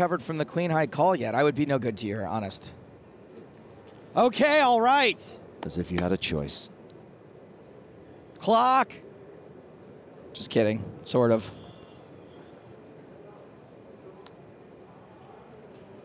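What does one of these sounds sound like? Poker chips click softly as they are handled.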